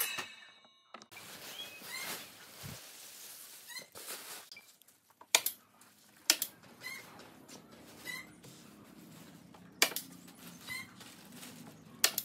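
Plastic sheeting crinkles and rustles.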